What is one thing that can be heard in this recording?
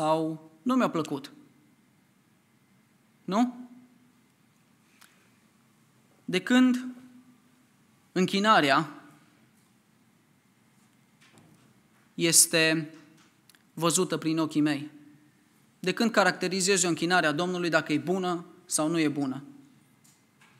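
A young man speaks calmly into a microphone, with long pauses between phrases.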